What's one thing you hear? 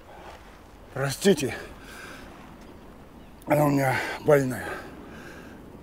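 A man speaks in short, gruff bursts close by.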